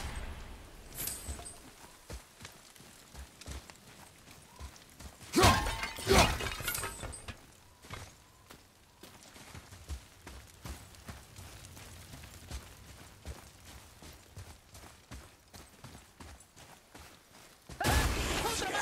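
Footsteps crunch over snow and gravel.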